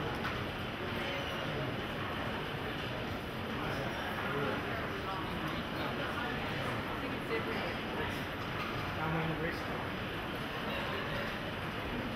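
Footsteps click and shuffle on a hard floor.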